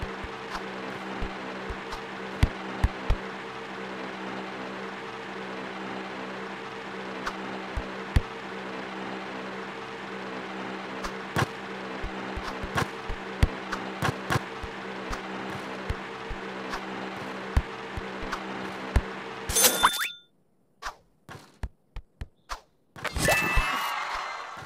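A basketball bounces and thuds on a wooden floor.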